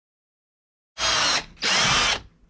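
A power drill whirs in short bursts.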